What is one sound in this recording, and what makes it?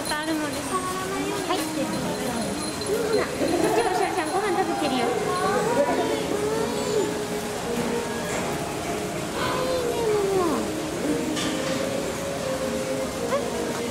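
Small monkeys give high, thin chirps and whistles.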